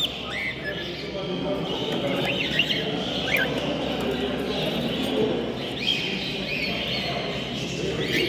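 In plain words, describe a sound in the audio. Small birds chirp and twitter close by.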